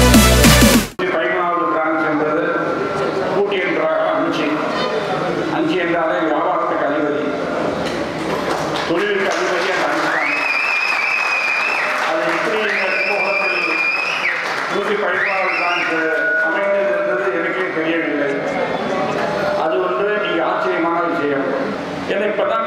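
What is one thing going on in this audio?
An elderly man speaks forcefully into a microphone over loudspeakers.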